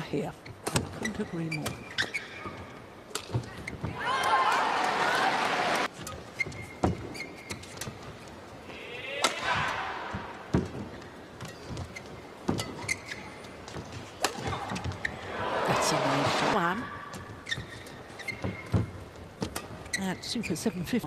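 Shuttlecock hits crack sharply back and forth in a badminton rally.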